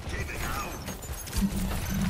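Laser beams buzz and crackle.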